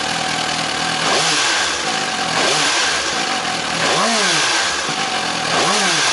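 A motorcycle engine revs up and down several times.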